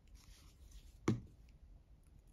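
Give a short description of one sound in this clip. A card is pressed down on a table with a soft tap.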